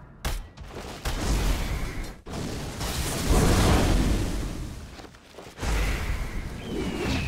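Fiery magic blasts roar and crackle in a game.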